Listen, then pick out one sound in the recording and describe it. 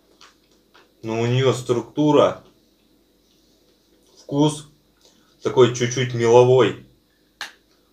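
A young man talks calmly and close up.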